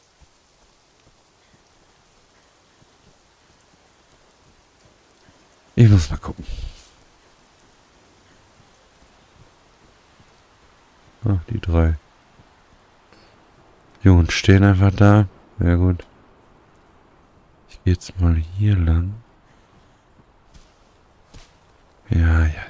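Footsteps crunch through snowy grass.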